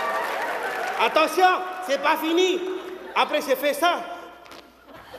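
A man speaks dramatically into a microphone, heard over loudspeakers in a large hall.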